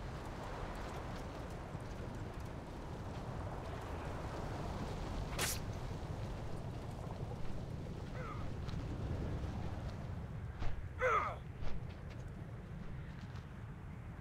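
A riding animal's footsteps thud steadily on soft ground.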